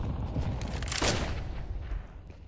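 A flash grenade bursts with a sharp bang and a ringing hiss.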